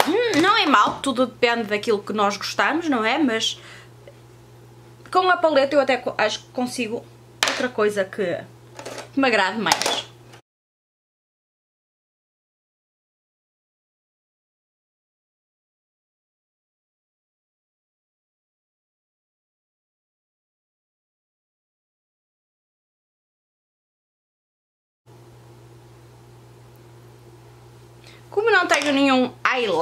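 A woman talks calmly and close up.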